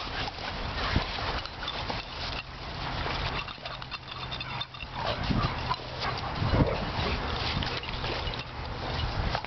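Dog paws scuff on gritty sand.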